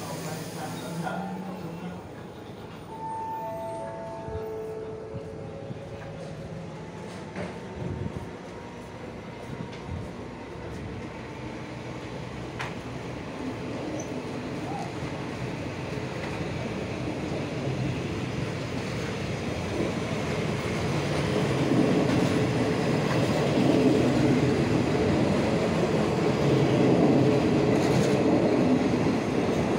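A train rolls past close by, its wheels rumbling and clattering on the rails, growing louder.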